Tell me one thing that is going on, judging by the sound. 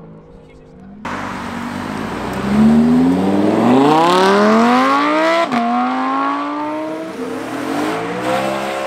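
A sports car engine revs up hard as the car accelerates away.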